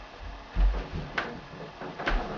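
A body lands with a thump on a bed.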